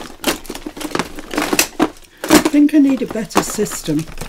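A plastic lid knocks and scrapes against a box.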